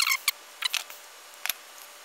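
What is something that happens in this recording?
Small scissors snip through thin paper.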